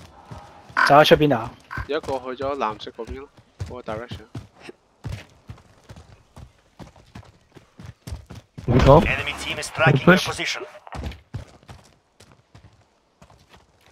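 Footsteps thud quickly on dirt and grass.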